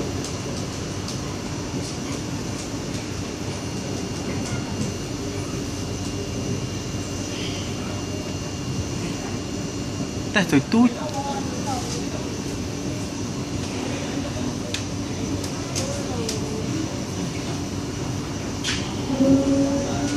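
A vehicle rumbles steadily as it travels along.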